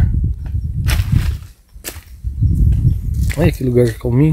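Wind rumbles over the microphone outdoors.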